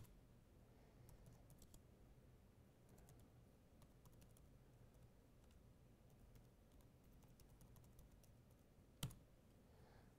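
Keys click softly on a keyboard.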